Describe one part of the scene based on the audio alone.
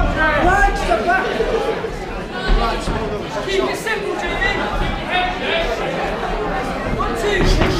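Boxing gloves thud against pads and bodies.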